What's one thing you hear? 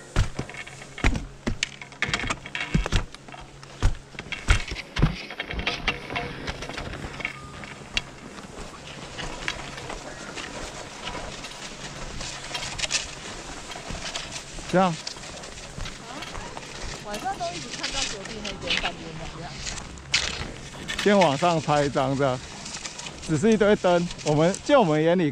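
Ski boots crunch and thud on packed snow.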